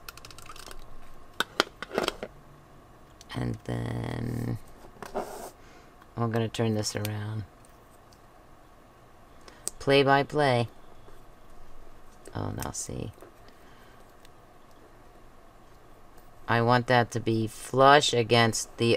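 Paper strips rustle and crinkle as fingers press them down.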